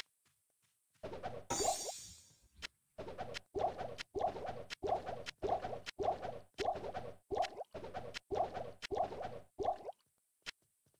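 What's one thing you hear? Glass potion bottles clink, one after another, as they are dropped on a floor.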